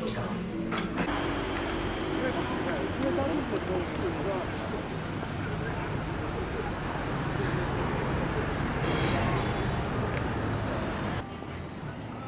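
A crowd murmurs outdoors on a busy street.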